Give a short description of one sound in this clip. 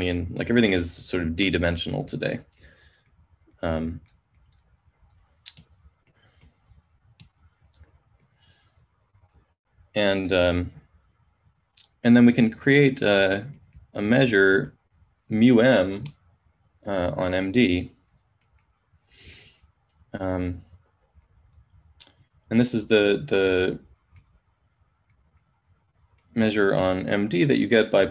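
A man speaks calmly in bursts with pauses, heard through a microphone on an online call.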